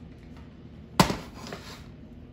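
A plastic toy gun knocks down onto a hard surface.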